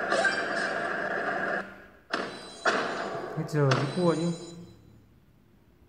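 Game music and sound effects play from a tablet's small speaker.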